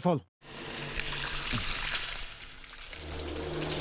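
Water pours and splashes over a man's head.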